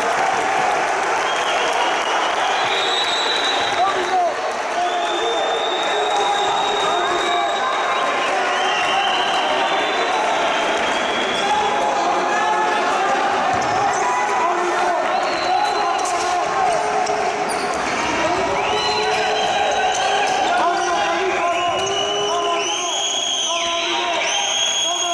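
Sneakers squeak on a hard indoor court floor in an echoing sports hall.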